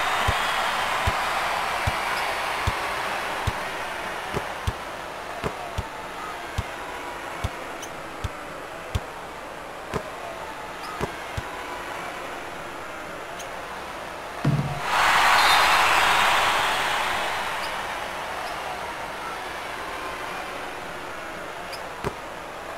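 A crowd murmurs throughout.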